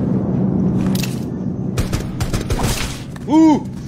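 Sharp gunshots crack in quick succession.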